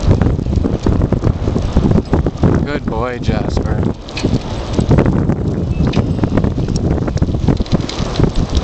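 Wind buffets loudly against the microphone outdoors.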